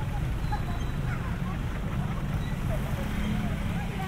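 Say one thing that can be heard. Women chat nearby on the street.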